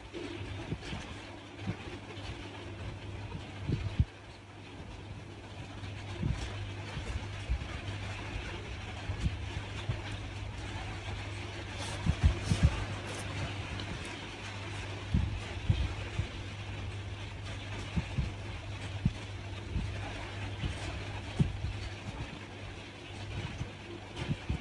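A crochet hook and yarn rustle softly with small taps.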